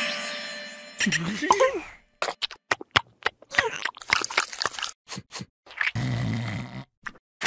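A cartoon creature babbles in a high, squeaky voice.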